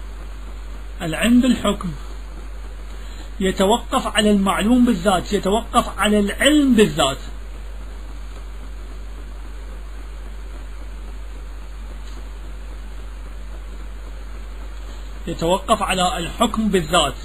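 A man speaks slowly and with emphasis into a microphone, pausing at length between phrases.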